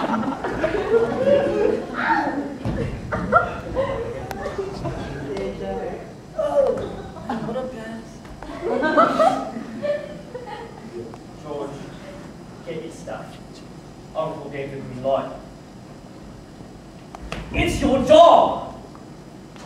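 A young man speaks loudly and with animation on a stage.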